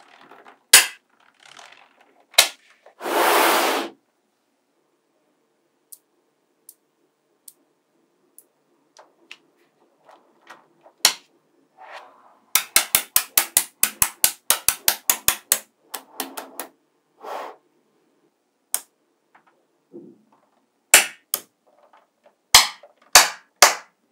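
Small magnetic steel balls click and snap together.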